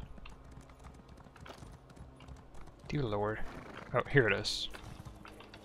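Hooves thud softly on grass at a steady trot.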